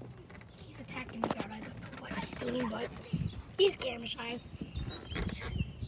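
A young boy talks close by.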